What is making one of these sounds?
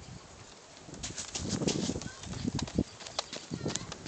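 A boy's footsteps thud on soft dirt as he runs closer.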